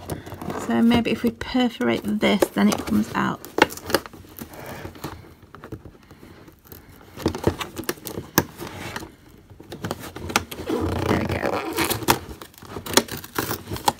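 Plastic tape crinkles and peels away from cardboard.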